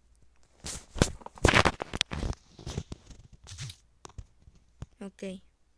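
Blocks are placed with soft dull thuds in a video game.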